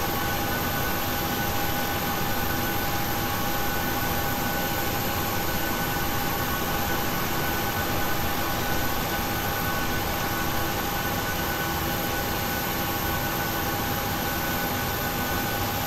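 A jet engine hums and whines steadily nearby.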